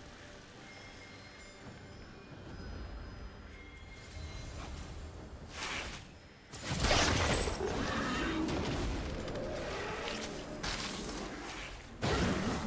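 Video game spell effects whoosh and crackle in bursts.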